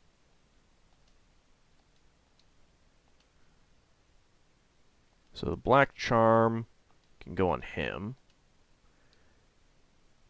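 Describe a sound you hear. Soft electronic menu blips tick now and then.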